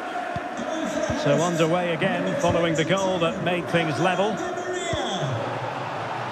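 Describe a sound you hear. A man shouts in celebration.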